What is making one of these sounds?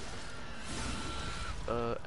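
A blade slashes wetly into flesh.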